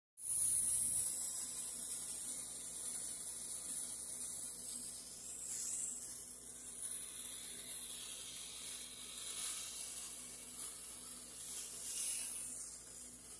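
Ice sizzles and hisses softly on a hot surface.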